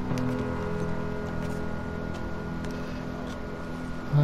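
A wooden cabinet door creaks open.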